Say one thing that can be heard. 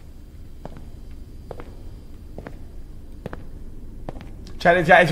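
Footsteps tap on a hard tiled floor at a slow, steady pace.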